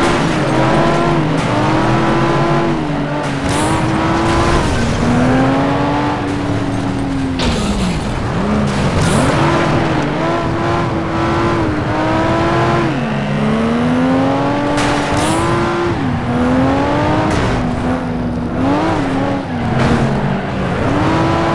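A race car engine revs high, rising and falling as gears change.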